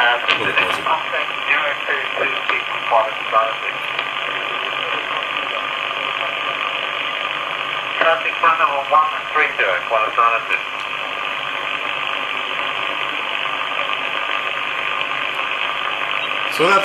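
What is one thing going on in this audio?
A radio receiver hisses with steady static through a small loudspeaker.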